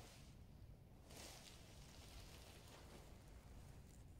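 A tarp rustles and flaps as it is spread over the ground.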